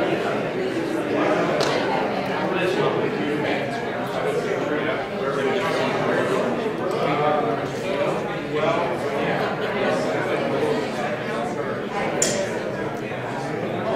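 A crowd of adults chatters all around in a room with some echo.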